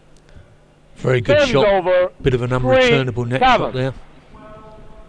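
A young man shouts loudly in an echoing hall.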